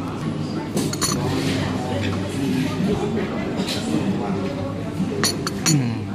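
A cup clinks on a saucer.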